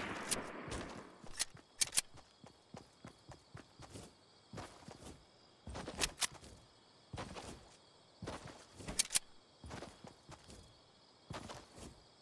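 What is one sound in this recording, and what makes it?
Footsteps run across grass.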